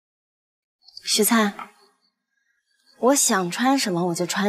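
A young woman speaks clearly and firmly nearby.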